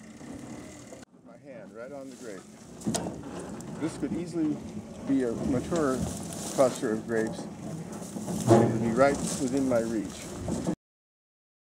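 An elderly man speaks calmly outdoors.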